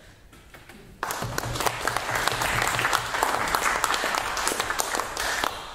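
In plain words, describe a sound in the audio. A room full of people applauds loudly.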